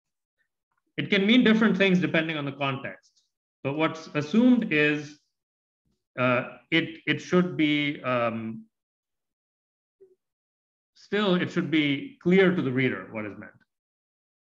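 A man speaks calmly into a microphone, in short bursts with pauses.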